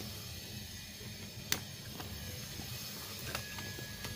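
Adhesive backing paper crackles as it is handled.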